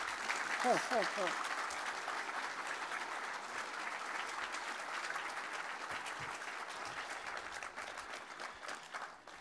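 An audience applauds steadily outdoors, then the clapping slowly thins out.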